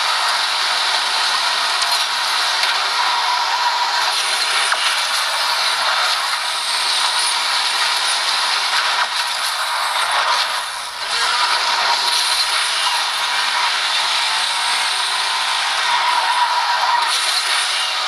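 A racing car engine roars and revs from a phone's speaker.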